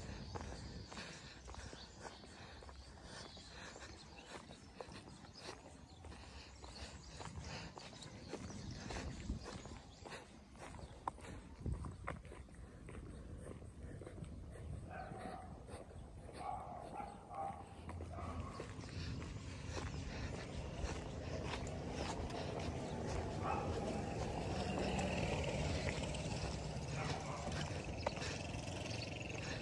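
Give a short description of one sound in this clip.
Sneakers step steadily on a concrete road outdoors.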